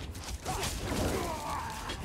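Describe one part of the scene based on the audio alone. A fire spell bursts with a roaring whoosh.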